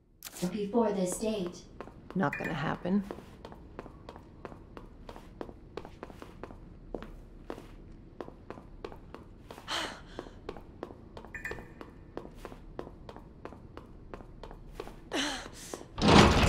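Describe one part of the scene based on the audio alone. Footsteps in heels tap steadily on a hard floor.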